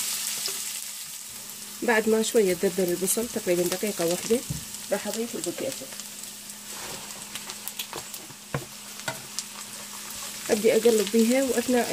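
A spoon scrapes and stirs in a frying pan.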